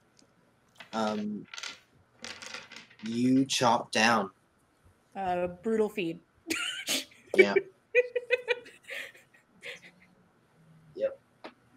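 A young woman talks and laughs with animation over an online call.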